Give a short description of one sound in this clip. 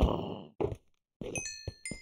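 A skeleton rattles as it is struck and dies.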